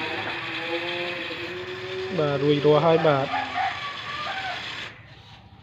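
An electric water pump motor hums steadily.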